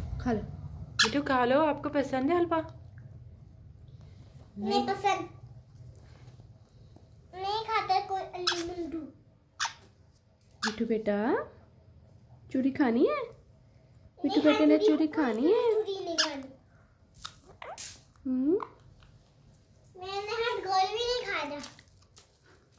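A parrot chatters and squawks in short bursts close by.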